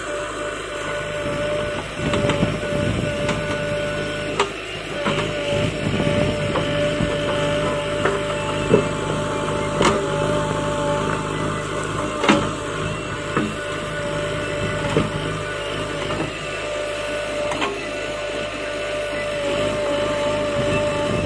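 A backhoe's diesel engine runs and whines steadily close by.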